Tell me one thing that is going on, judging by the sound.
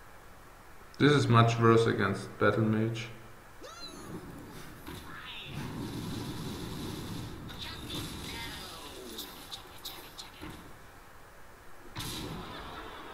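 Game sound effects burst and chime.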